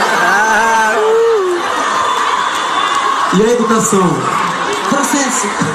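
A crowd cheers and screams throughout.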